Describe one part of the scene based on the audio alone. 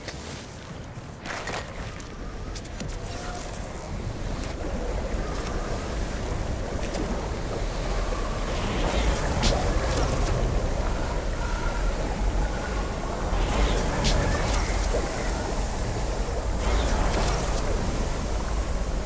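Footsteps of a game figure patter on stone.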